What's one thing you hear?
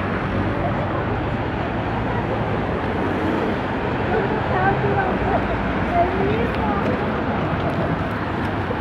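Traffic rumbles steadily on a busy street outdoors.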